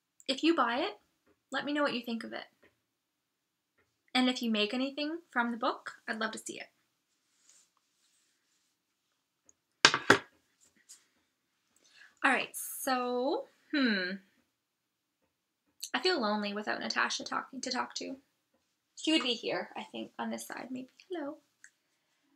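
A young woman talks calmly and thoughtfully close to a microphone, with pauses.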